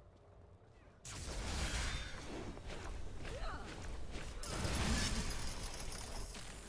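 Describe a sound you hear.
Magical spells burst and whoosh loudly.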